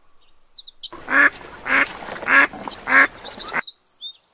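Ducks quack.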